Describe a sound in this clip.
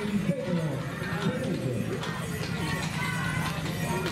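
Horse hooves clop on wet cobblestones.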